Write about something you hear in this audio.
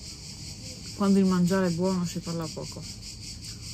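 A young woman speaks briefly up close.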